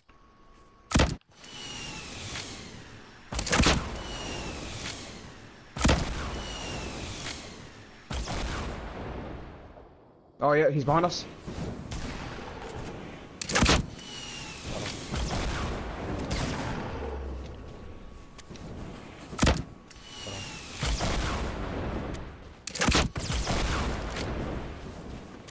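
Loud gunshots ring out one at a time, each echoing away.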